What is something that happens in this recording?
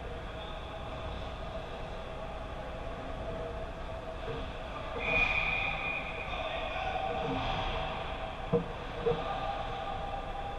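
Ice skates scrape and carve across the ice in a large echoing rink.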